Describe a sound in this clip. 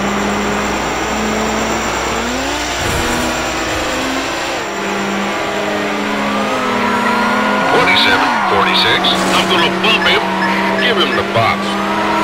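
A racing car engine drones steadily, rising and falling in pitch.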